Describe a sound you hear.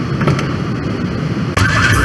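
A car door opens with a clunk.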